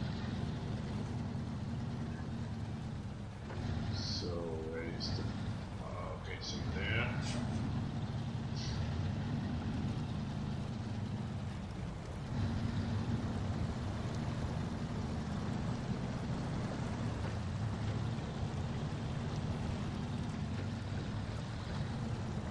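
A truck's diesel engine rumbles steadily as it drives.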